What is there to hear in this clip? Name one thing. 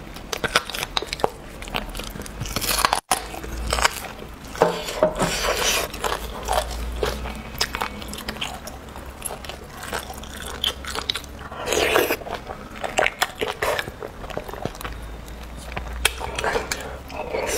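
A young woman chews and slurps food close to a microphone.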